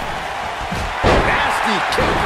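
A body slams hard onto a wrestling mat.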